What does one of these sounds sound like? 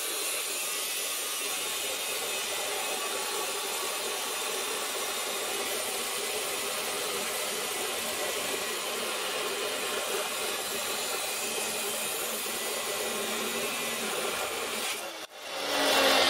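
An abrasive chop saw grinds steadily through metal.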